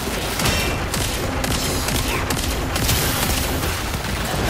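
Explosions boom and sizzle.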